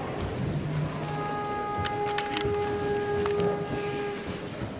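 A band plays steady sustained notes.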